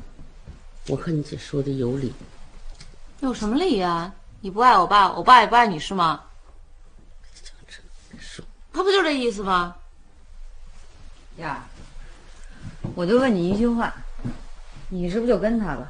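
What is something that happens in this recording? An elderly woman speaks pleadingly, close by.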